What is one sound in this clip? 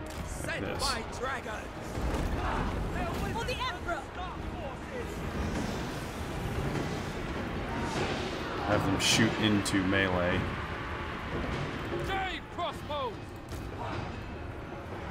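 Weapons clash in a loud, busy battle.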